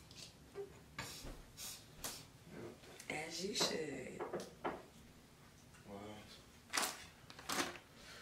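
A young woman shuffles small items on a counter.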